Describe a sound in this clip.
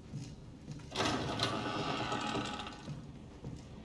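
An old wooden door creaks open.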